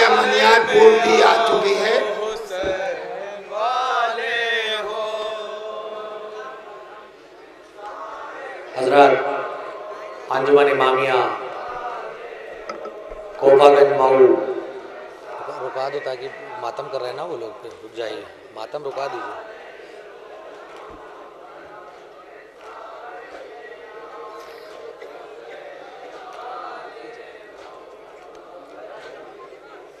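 A man recites loudly into a microphone through loudspeakers, with reverberation outdoors.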